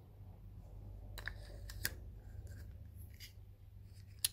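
A glass bulb clicks and scrapes into a plastic lamp holder.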